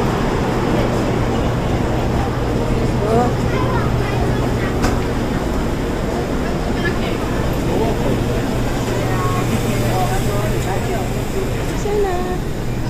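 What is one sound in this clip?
Several adults chatter nearby.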